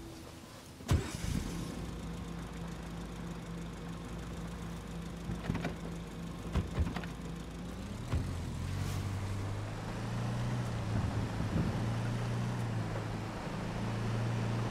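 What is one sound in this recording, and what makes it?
A car engine idles and then revs as the car drives off.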